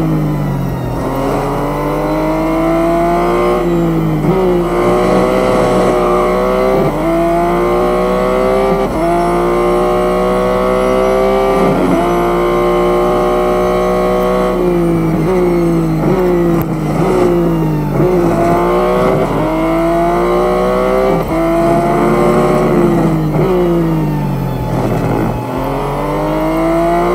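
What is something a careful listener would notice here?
A racing car engine roars, rising in pitch as it speeds up and dropping sharply at each gear change and braking.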